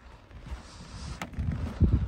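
Footsteps crunch on a frosty wooden deck.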